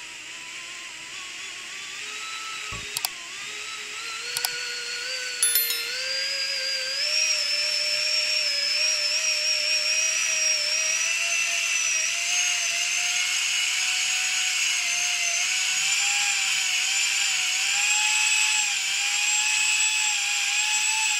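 An electric drill motor whirs with a steady whine that slowly rises in pitch.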